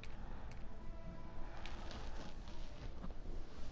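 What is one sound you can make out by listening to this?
A soft menu click sounds as a selection changes.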